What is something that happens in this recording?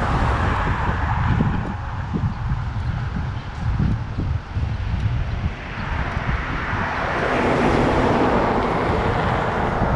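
A van drives past on the road.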